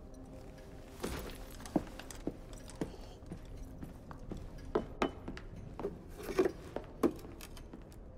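Small objects clink and knock on a wooden desk.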